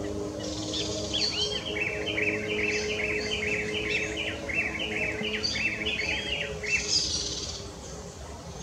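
A bird sings a fast, repeated chattering song close by.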